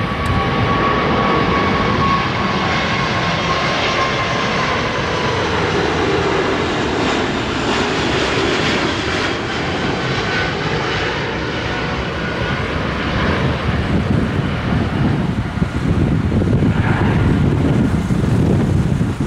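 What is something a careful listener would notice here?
A jet airliner's engines roar loudly overhead, with a whining tone that slowly falls and a deep rumble that grows.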